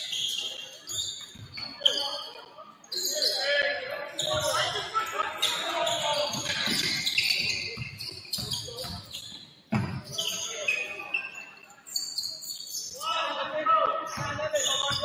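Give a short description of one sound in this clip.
A basketball bounces on a hard floor with echoing thuds.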